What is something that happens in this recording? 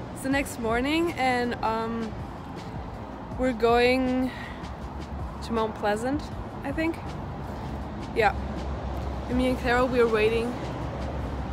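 A young woman talks casually close to the microphone.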